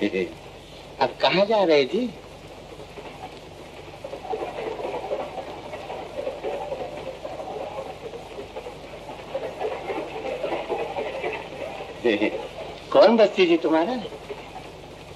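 A man laughs loudly and gleefully.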